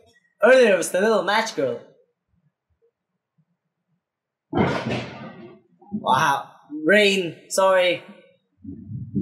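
A young man talks cheerfully into a nearby microphone.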